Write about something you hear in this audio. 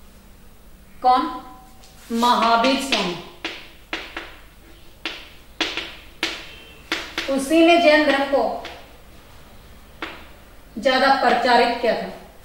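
A young woman speaks calmly nearby, explaining.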